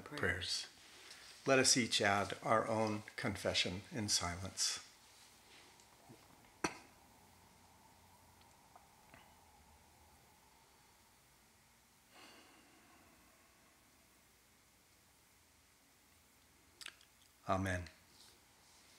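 A man speaks calmly and softly close by.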